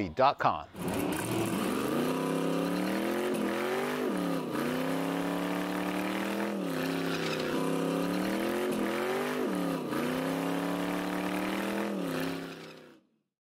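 An engine revs hard, rising and falling repeatedly.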